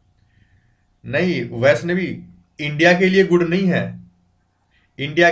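A man speaks calmly into a close microphone, lecturing.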